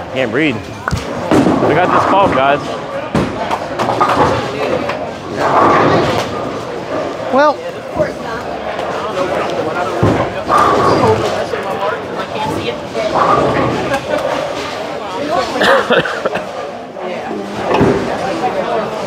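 People chatter and call out in a large echoing hall.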